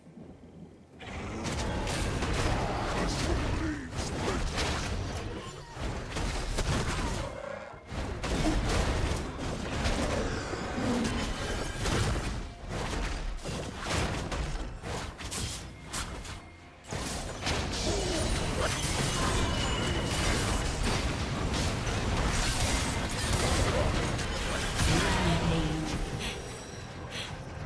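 Game spell effects whoosh, crackle and thump during a fight.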